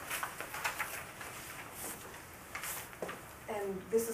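Papers rustle and shuffle nearby.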